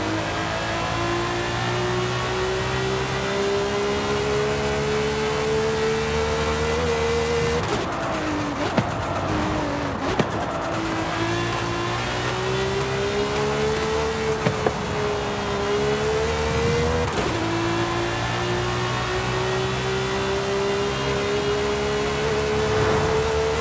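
A racing car engine roars loudly at high revs, rising through the gears.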